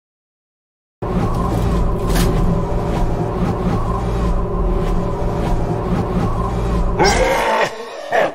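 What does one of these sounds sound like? A lift hums steadily as it descends.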